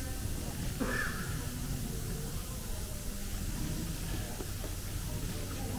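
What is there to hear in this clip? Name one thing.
Adults murmur quietly nearby.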